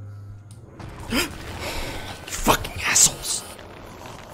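A young man exclaims in fright close to a microphone.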